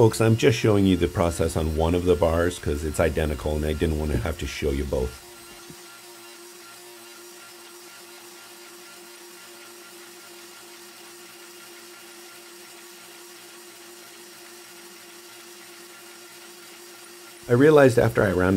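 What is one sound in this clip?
A hydraulic press hums steadily.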